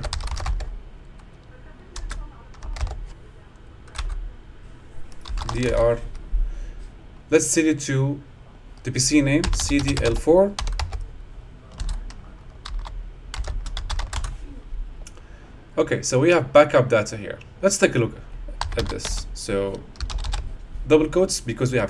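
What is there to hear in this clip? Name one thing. Keys click on a keyboard as someone types.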